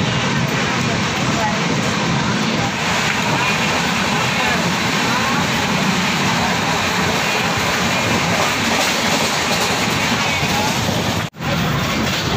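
A crowd of passengers chatters in a train carriage.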